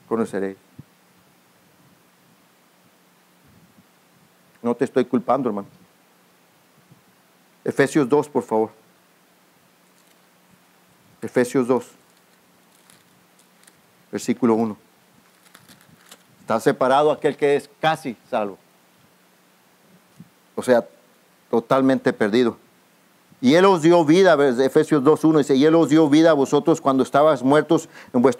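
A man speaks slowly into a microphone, with long pauses between phrases.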